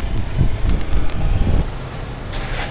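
A motorcycle rides along, with wind rumbling past.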